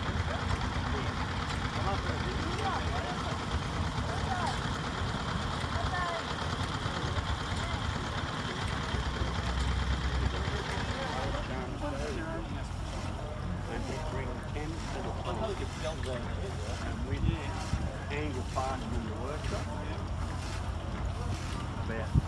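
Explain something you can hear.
An old stationary engine chugs steadily.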